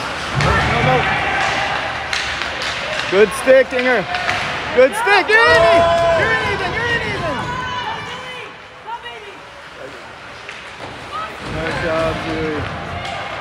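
Spectators shout and cheer in a large echoing rink.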